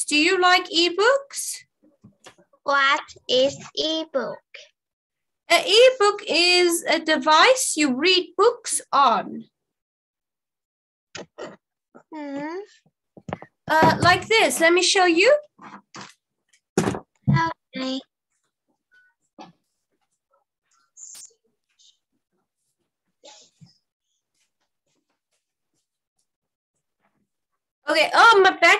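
A young girl answers in a small voice over an online call.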